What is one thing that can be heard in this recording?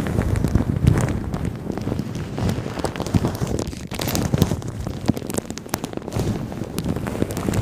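A young woman whispers softly into a microphone up close.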